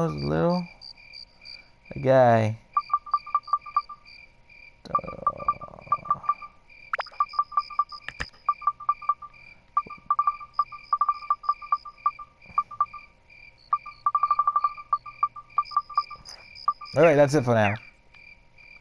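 A short electronic whoosh sweeps as a menu opens and closes.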